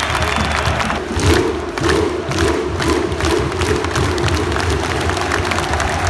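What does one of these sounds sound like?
A large crowd chants together in a steady rhythm.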